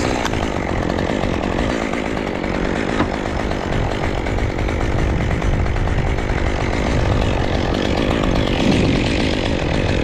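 A chainsaw engine runs steadily close by.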